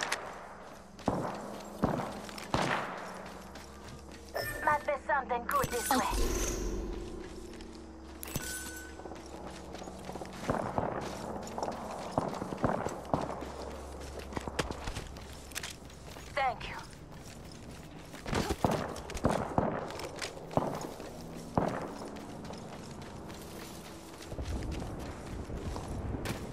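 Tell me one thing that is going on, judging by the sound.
Footsteps thud quickly on dirt and sand while running.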